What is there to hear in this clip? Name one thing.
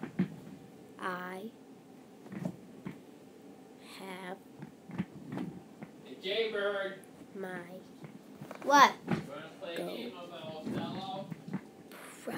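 A young boy speaks and exclaims close by in bursts.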